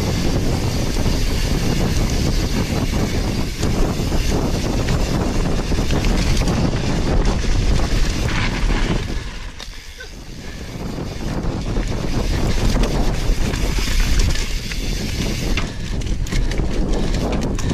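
Knobby bike tyres crunch and skid over a dirt trail.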